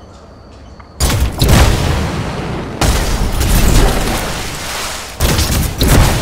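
Jet thrusters roar loudly in bursts.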